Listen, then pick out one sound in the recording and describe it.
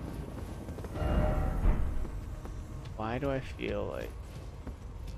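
A young man speaks briefly and casually into a nearby microphone.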